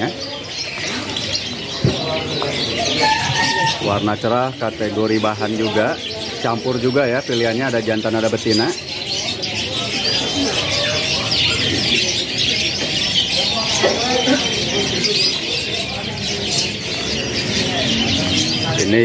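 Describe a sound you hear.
Many canaries chirp and trill busily close by.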